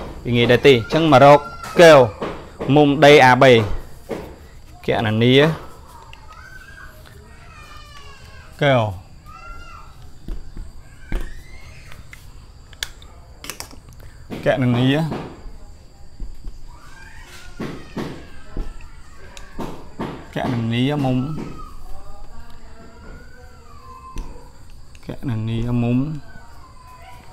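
A young man speaks calmly close to a microphone, in short bursts with pauses.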